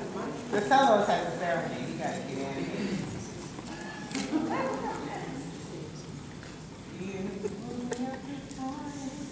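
Several adults talk at once.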